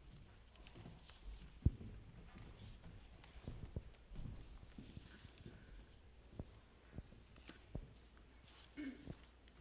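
Footsteps thud on a wooden floor in a large echoing hall.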